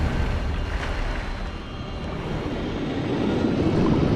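A figure dives into water with a splash.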